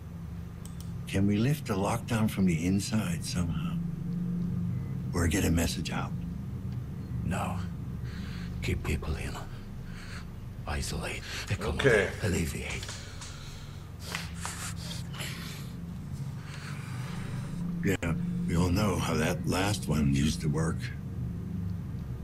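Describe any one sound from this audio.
A middle-aged man speaks with agitation, close by.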